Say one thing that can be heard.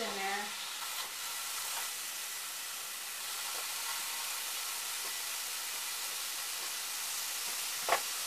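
A utensil clinks against a pan.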